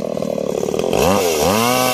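A chainsaw revs up briefly.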